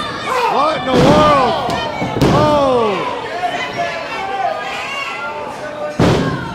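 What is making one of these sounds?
Wrestlers' bodies slam onto the ring mat with loud thuds.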